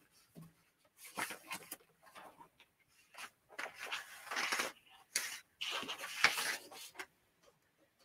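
Paper rustles as it is handled.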